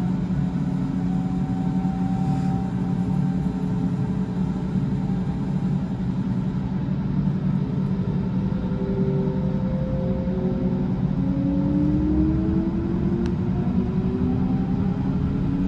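An electric train's motor whines, rising slowly in pitch.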